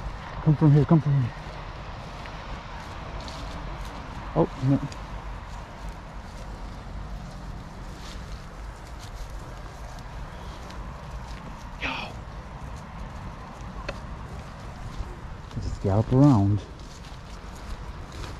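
Wind rumbles across the open hillside.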